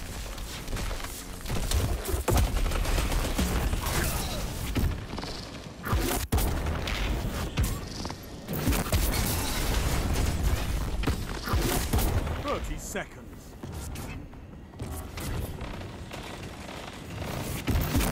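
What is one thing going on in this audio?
Gunfire and explosions boom in quick bursts.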